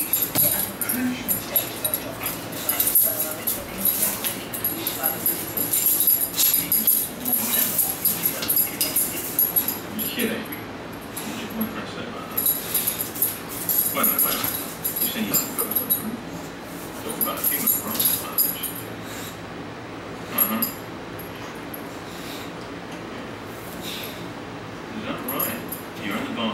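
A dog chews and nudges a rubber toy.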